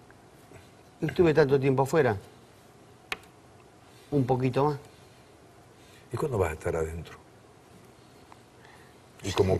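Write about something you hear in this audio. An older man speaks calmly in short phrases, with pauses between them.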